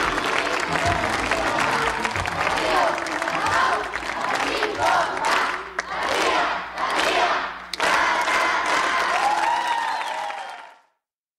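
A crowd applauds and cheers loudly in a large echoing hall.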